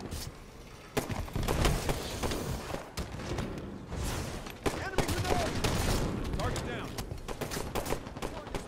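Gunfire rattles in short, sharp bursts.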